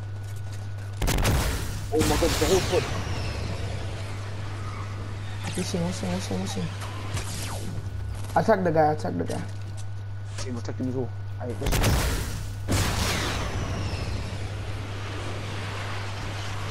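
A rocket launches with a loud roaring whoosh.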